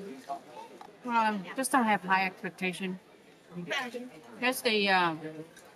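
A young woman speaks with animation close by, with pleased, drawn-out sounds.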